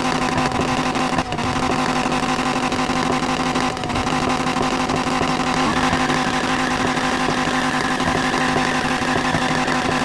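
A car exhaust pops and crackles with backfires.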